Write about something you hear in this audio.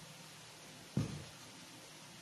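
A pot thumps down onto a table.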